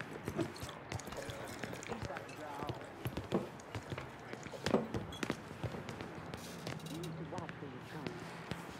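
Footsteps tap across a hard floor indoors.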